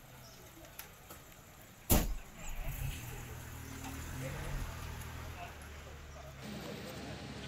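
A van engine runs as the van rolls slowly past.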